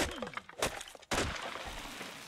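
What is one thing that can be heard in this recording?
An axe chops into wood with sharp thuds.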